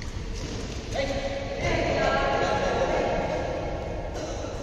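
A man calls out across a badminton court.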